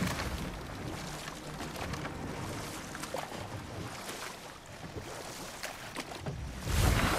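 Oars splash and slosh through water.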